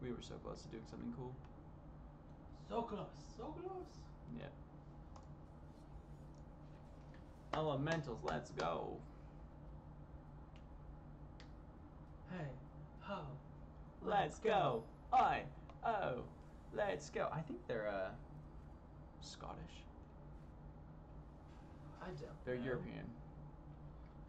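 A young man talks casually into a headset microphone.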